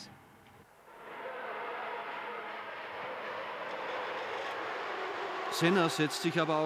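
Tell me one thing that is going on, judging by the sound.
A racing car engine screams past at high revs.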